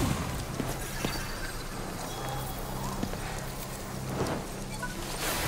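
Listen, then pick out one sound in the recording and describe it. Magical energy crackles and hums softly.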